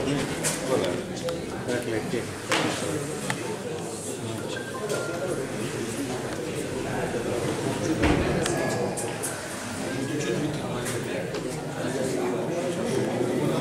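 A crowd of people chatters in an echoing indoor hall.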